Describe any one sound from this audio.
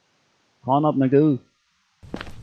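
A man speaks in a cartoonish voice.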